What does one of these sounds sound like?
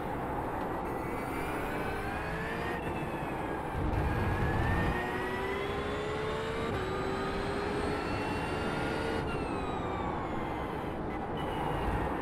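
A racing car engine roars, rising in pitch and dropping with each gear change.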